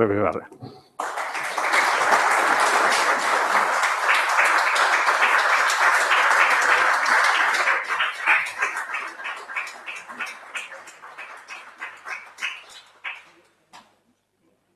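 An audience applauds, the clapping slowly dying away.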